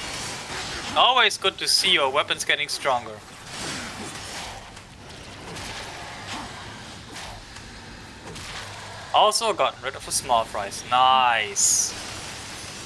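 Blades slash and clang in a fierce game fight.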